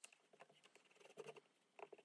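A foam blending tool softly scrubs ink onto paper.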